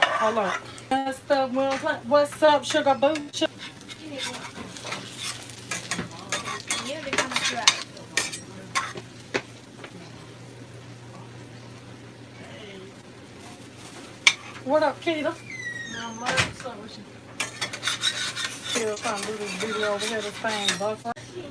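A metal spatula scrapes and clicks against a frying pan.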